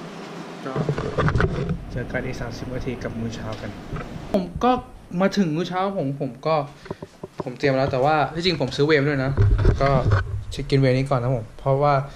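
A young man talks with animation, close up.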